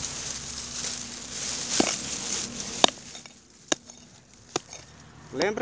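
A hoe chops into dry soil with sharp thuds.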